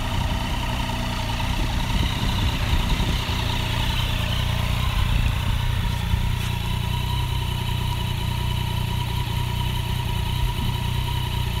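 A motorcycle engine idles with a steady, low rumble.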